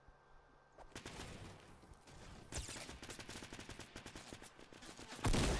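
A blast booms and rumbles.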